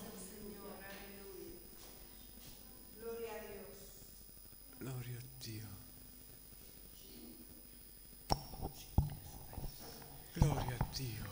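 A man speaks calmly into a microphone over loudspeakers.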